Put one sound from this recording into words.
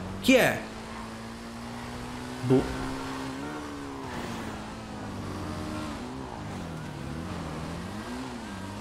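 A motorcycle engine hums steadily, its pitch rising and falling.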